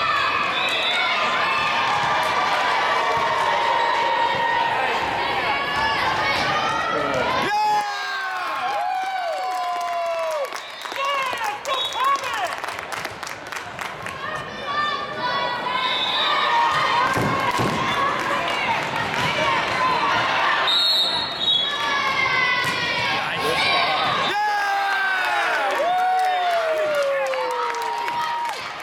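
Sneakers squeak sharply on a hard gym floor.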